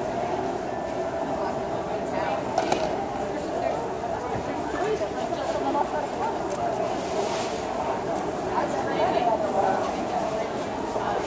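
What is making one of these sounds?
A crowd murmurs and chatters all around in a large hall.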